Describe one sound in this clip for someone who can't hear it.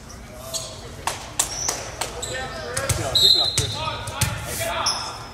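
A volleyball thumps off hands and arms in a large echoing gym.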